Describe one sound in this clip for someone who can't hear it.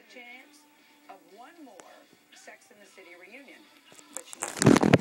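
A woman speaks calmly through a television speaker.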